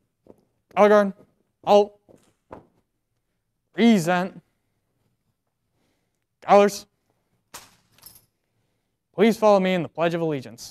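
A young man shouts drill commands in short, drawn-out calls in an echoing room.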